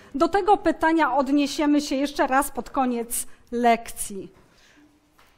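A young woman speaks clearly and with animation.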